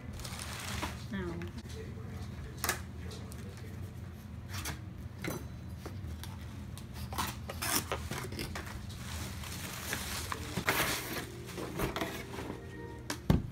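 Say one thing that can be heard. Paper rustles and crinkles as a gift is unwrapped.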